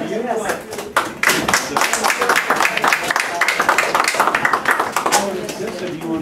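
A small audience applauds with brisk clapping.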